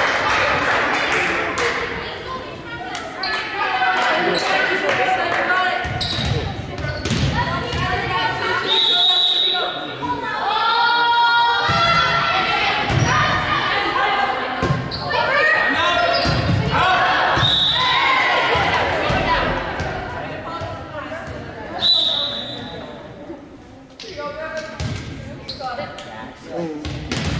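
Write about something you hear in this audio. A volleyball is struck with a hard slap.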